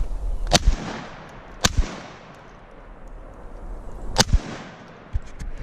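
Shotgun blasts ring out outdoors and echo away.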